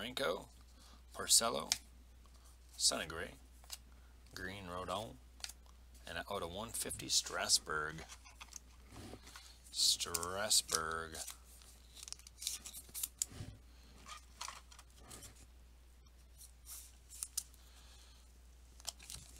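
Trading cards slide and rustle between fingers.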